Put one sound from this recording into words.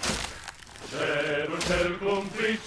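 A chorus of men sings in deep voices.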